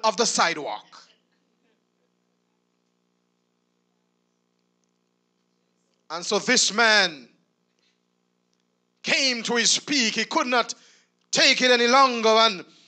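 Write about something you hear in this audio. A man preaches with animation into a microphone, with pauses between phrases.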